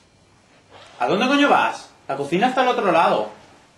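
A young man speaks loudly and with animation close by.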